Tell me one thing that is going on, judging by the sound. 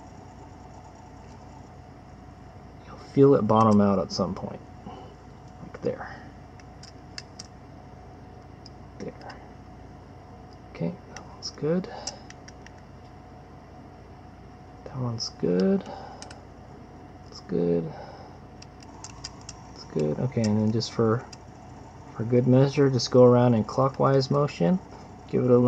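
A small screwdriver scrapes and clicks against tiny screws.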